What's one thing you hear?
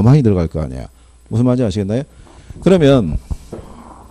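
A middle-aged man speaks clearly into a microphone, lecturing with animation.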